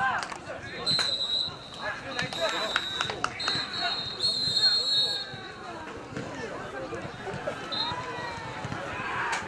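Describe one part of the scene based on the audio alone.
A crowd of children and adults shout and chatter outdoors.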